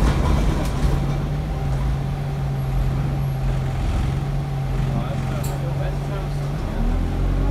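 A bus engine hums and rumbles steadily from inside the bus.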